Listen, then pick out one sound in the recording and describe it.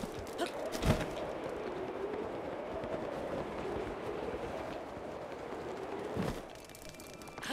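Wind howls and whistles.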